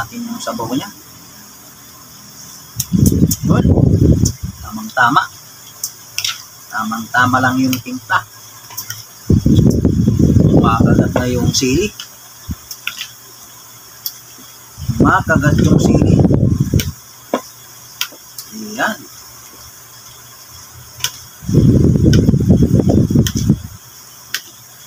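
A spoon clinks and scrapes against a bowl while food is stirred.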